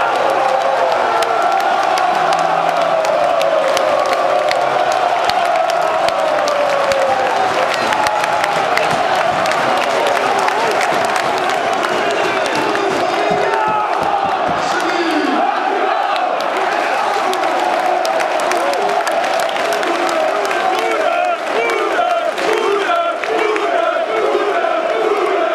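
A crowd of fans cheers and shouts nearby.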